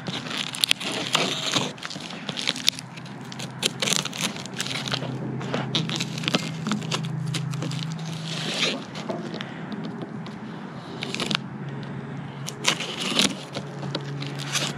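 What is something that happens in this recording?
Cardboard rustles and scrapes as hands handle a box.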